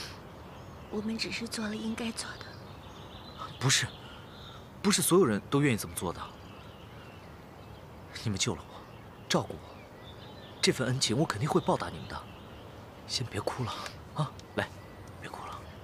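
A young man speaks softly and earnestly, close by.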